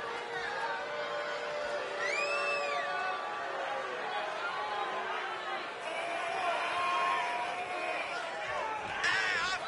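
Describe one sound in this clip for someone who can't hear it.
A large crowd cheers in a big arena.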